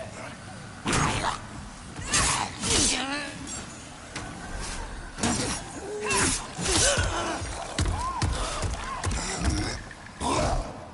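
Metal blades strike and clang in a fight.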